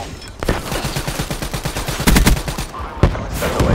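An automatic gun fires rapid bursts.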